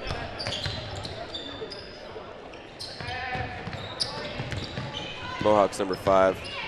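A crowd murmurs in a large echoing gym.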